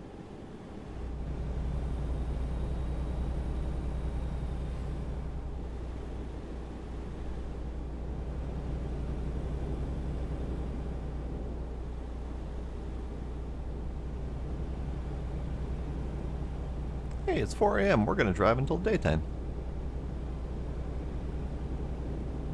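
A truck engine hums low and steady.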